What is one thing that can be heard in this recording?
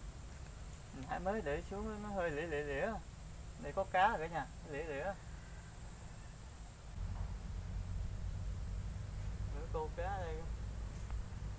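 A young man speaks briefly nearby outdoors.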